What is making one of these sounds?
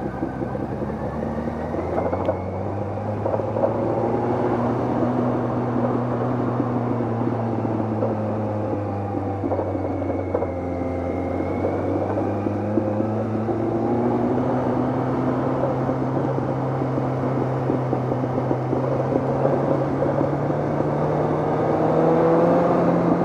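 Wind rushes past a moving rider.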